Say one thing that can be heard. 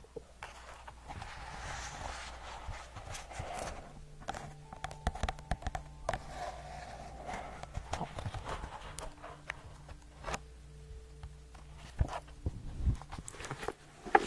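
Book pages rustle and flip close to a microphone.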